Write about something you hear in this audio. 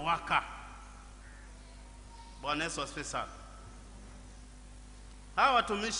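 A man speaks slowly and calmly into a microphone, in short phrases with pauses.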